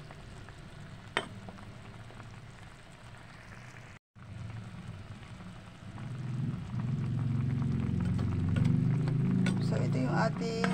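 A thick stew bubbles and simmers in a pot.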